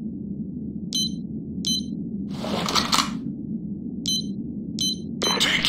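An electronic keypad beeps in short, high tones as a code is entered.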